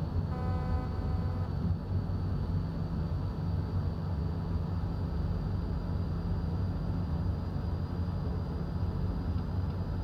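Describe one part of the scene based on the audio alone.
A train engine rumbles steadily as the train rolls along the track.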